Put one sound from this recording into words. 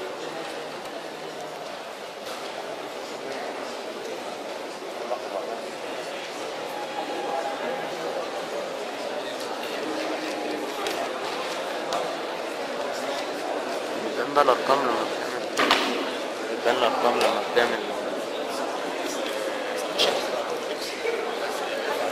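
A man lectures in a room that echoes, his voice heard from a distance.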